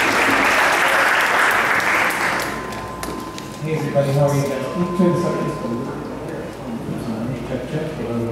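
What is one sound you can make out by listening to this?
A crowd murmurs and chatters indoors.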